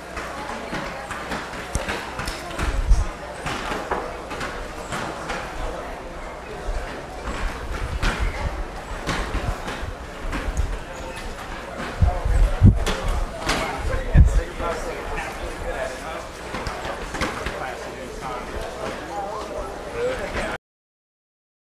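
A crowd of young men chat and talk over one another nearby.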